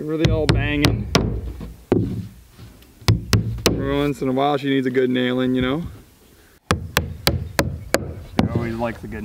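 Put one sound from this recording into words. A hammer taps nails into a roof.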